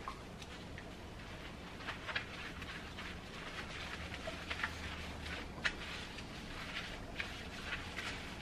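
Wet cloth is scrubbed and wrung by hand in soapy water, with splashes and squelches.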